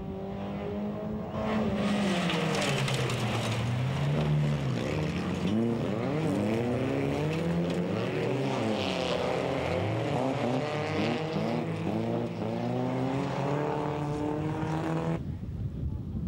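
Several race car engines roar at full throttle on a dirt track, rising and falling in pitch.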